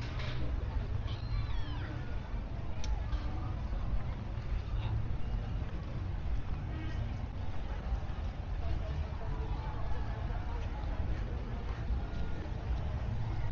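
A crowd of men and women chatters in the distance outdoors.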